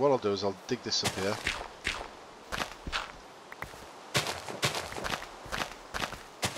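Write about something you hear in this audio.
A shovel digs into dirt and grass with repeated short crunches.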